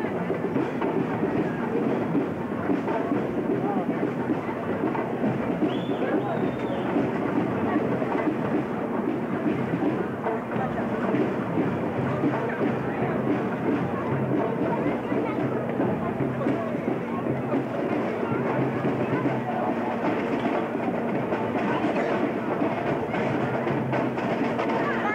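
A crowd of onlookers chatters nearby.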